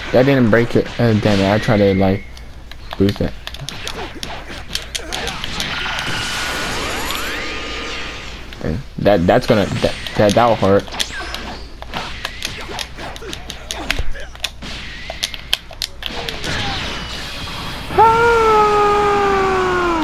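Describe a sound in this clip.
Punches and energy blasts crack and thud in rapid bursts.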